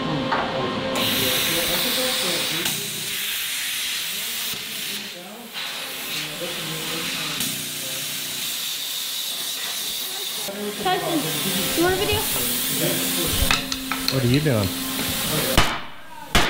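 An angle grinder cuts through metal with a harsh whine.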